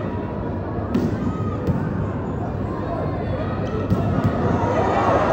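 A volleyball is struck hard during a rally.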